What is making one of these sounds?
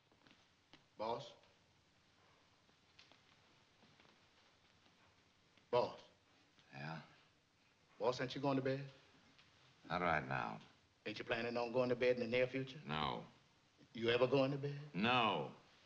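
A man asks questions in a low, hesitant voice nearby.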